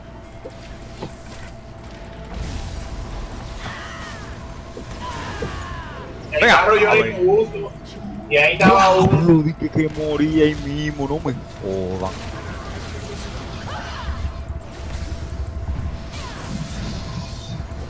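Magical spell effects whoosh and crackle.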